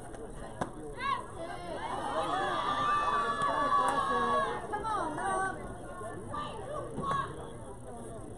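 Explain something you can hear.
Players shout and cheer from across an open field.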